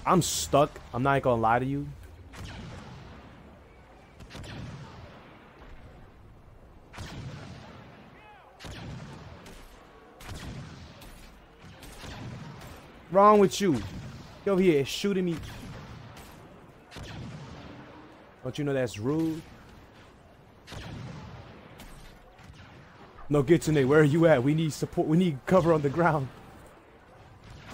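Laser blasters fire in quick bursts.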